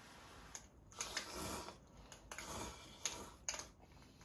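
A man slurps noodles loudly up close.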